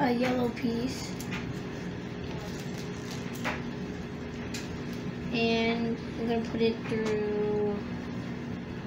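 A young child speaks nearby.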